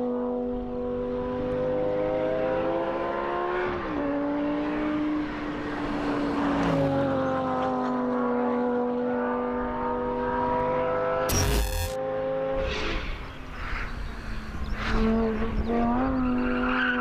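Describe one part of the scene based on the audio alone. A sports car engine roars at high revs, shifting pitch as it changes gear.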